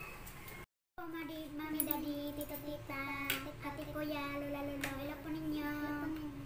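A young girl talks cheerfully close by.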